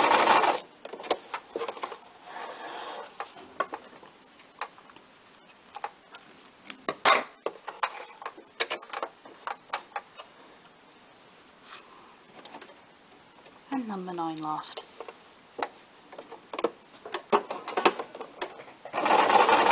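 Small clicks and knocks come from adjusting a sewing machine.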